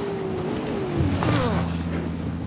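A motorbike crashes with a loud thud.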